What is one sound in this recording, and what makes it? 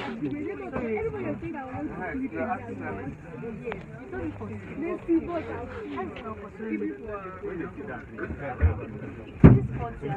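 Several young women chatter close by, with voices overlapping.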